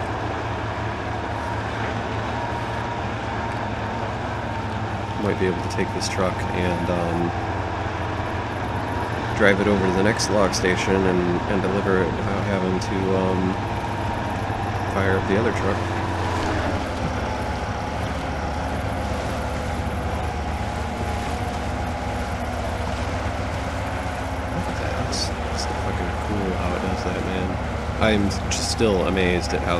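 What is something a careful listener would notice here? A heavy truck engine rumbles steadily, straining as it drives.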